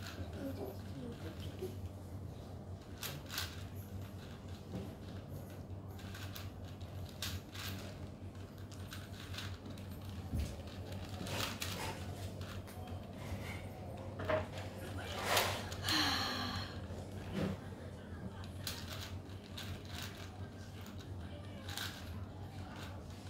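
The layers of a plastic puzzle cube click and clack as they are turned quickly.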